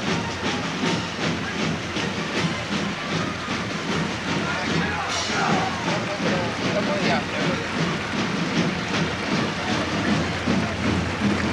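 Many soldiers' boots stamp in time on pavement as they march.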